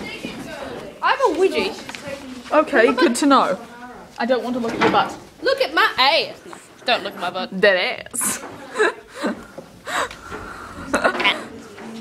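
A young woman talks excitedly and shouts close by.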